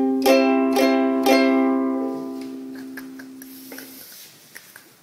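A ukulele is strummed in a few quick, ringing strokes that fade away.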